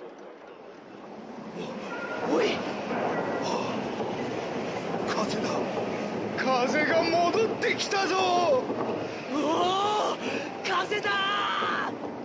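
Wind blows steadily as windmill sails turn.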